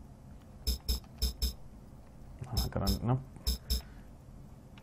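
Short electronic menu beeps sound in quick bursts.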